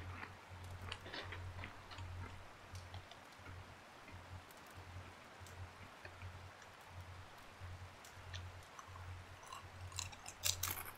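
A wood fire crackles and pops steadily.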